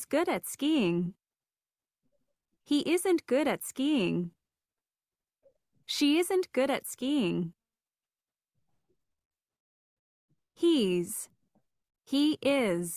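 A young woman reads out short phrases slowly and clearly over an online call, pausing between them.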